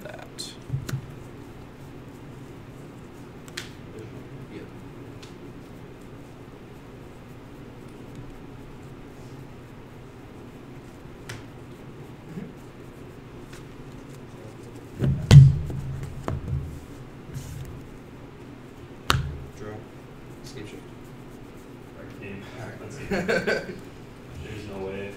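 Playing cards shuffle softly in a player's hands.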